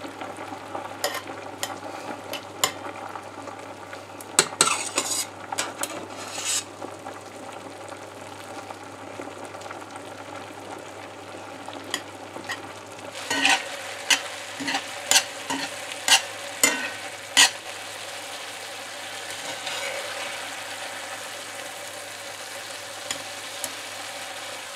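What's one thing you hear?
Metal tongs clack against a pan.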